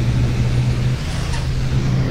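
A bus engine briefly drops in pitch as the bus shifts gear.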